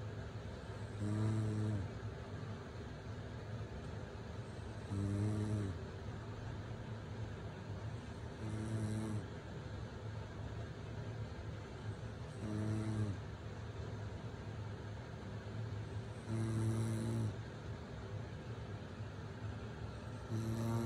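A sleeping woman snores close by, in deep, rumbling snores every few seconds.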